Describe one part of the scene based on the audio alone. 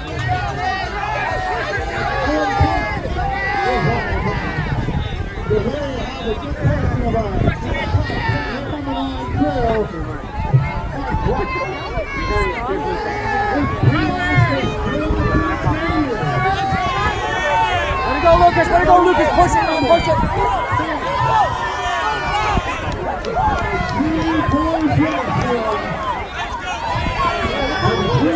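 A crowd of spectators nearby cheers and shouts encouragement outdoors.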